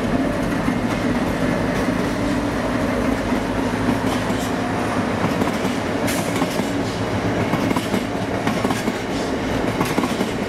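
Freight wagons rattle and clatter over the rail joints.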